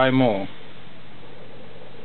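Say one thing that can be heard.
A finger presses a button on a test instrument's front panel.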